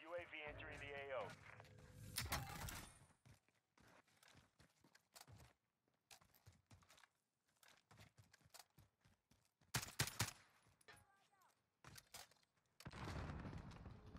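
Footsteps tread steadily over dirt and concrete.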